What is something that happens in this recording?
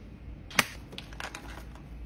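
A plastic clamshell container crinkles as it is opened.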